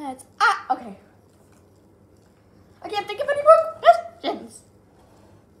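A girl speaks close by with animation.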